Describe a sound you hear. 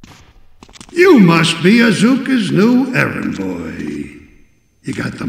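A man speaks mockingly.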